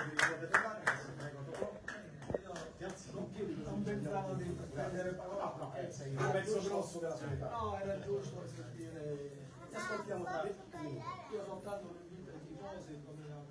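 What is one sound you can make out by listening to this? A middle-aged man speaks with animation to a room.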